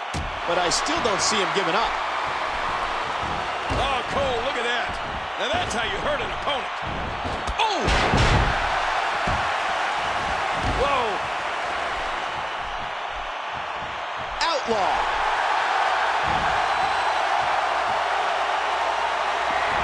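A crowd cheers and roars steadily in a large arena.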